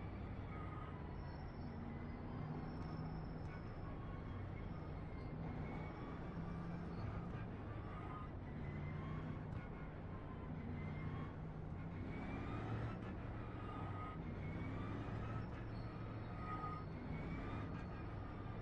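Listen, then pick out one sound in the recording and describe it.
A racing car engine roars steadily, its pitch rising and falling with gear changes.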